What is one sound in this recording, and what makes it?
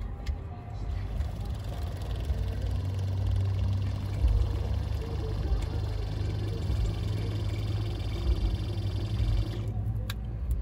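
A small electric pump hums steadily.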